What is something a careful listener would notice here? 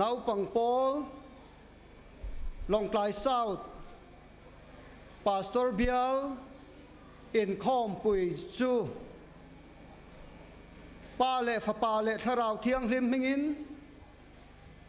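A man speaks loudly and with animation into a microphone, in short phrases with pauses, echoing through a large hall.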